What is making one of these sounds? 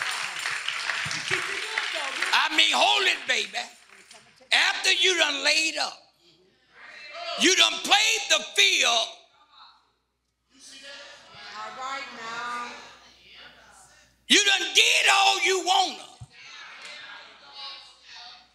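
A man preaches with animation into a microphone in an echoing hall.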